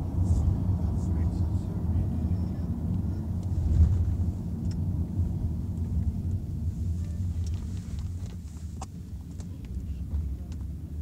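Tyres rumble over the road.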